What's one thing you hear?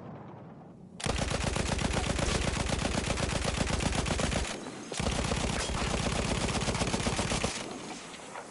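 A heavy machine gun fires in long, rapid bursts close by.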